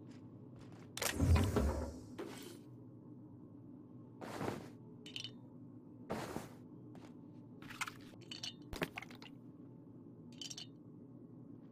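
Short clattering pickup sounds ring out several times.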